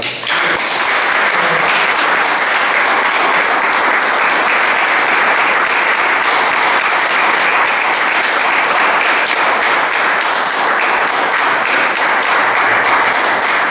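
An audience claps steadily in a room.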